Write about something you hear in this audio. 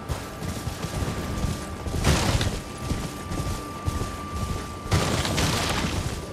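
A horse gallops with hooves thudding on the ground.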